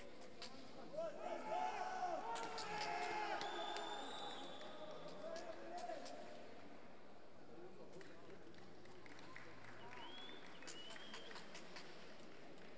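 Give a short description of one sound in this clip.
A crowd claps and whistles.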